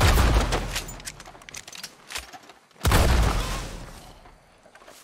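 Loud gunshots ring out and echo.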